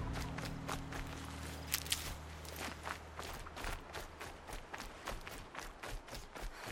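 Footsteps run quickly through grass and brush.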